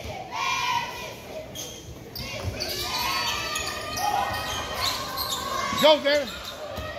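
Girls chatter and call out across a large echoing gym.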